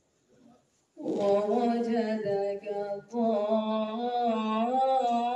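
A man chants loudly in a long, drawn-out voice through a loudspeaker.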